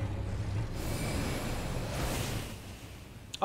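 A magic spell bursts with a shimmering whoosh.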